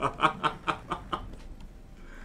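A young man laughs loudly in short bursts close to a microphone.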